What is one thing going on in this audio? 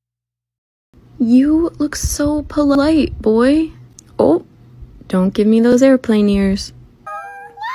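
A kitten meows repeatedly up close.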